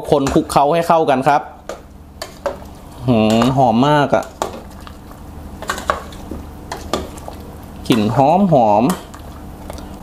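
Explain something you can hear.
A metal ladle stirs and scrapes in a pot of soup.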